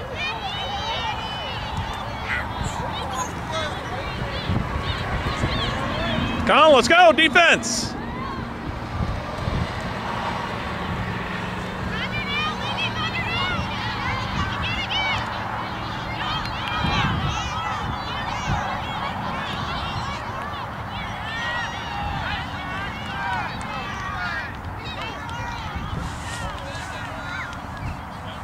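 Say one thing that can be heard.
Women spectators chat and call out nearby outdoors.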